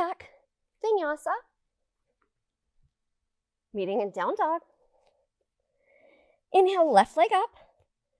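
A woman speaks calmly and clearly into a close microphone, giving instructions.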